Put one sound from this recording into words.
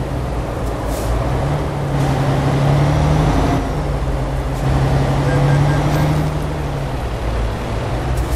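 A truck engine hums steadily and deeply.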